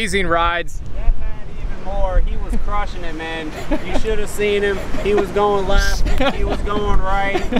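A man speaks calmly, a little farther off, outdoors.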